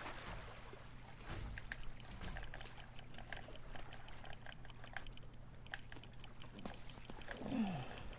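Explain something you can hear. A fishing reel clicks rapidly as the line is wound in.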